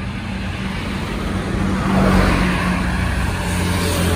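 A motorcycle engine hums as it approaches.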